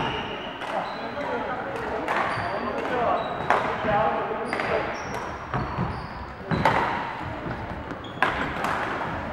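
Many people talk and call out in the background of a large echoing hall.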